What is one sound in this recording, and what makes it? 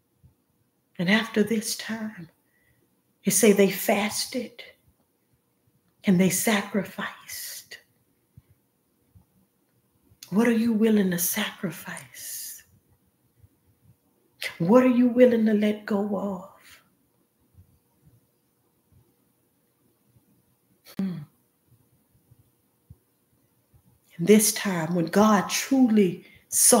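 A young woman speaks calmly into a nearby microphone, in short bursts with pauses.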